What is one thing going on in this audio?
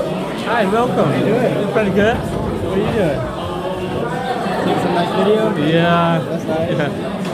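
A young man talks close by with animation.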